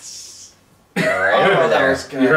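Several young men laugh loudly together.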